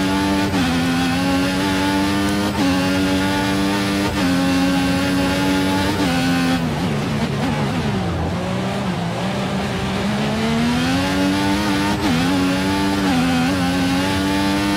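A racing car engine screams at high revs, shifting up through the gears with sharp drops in pitch.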